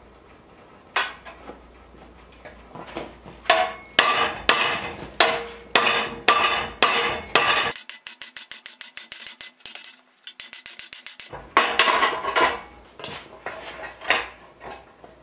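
A hammer strikes metal in sharp ringing blows.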